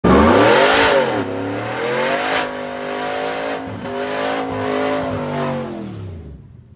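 A truck engine roars loudly, revving up and down.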